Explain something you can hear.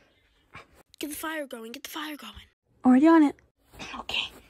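A man speaks in a high, squeaky puppet voice, close by.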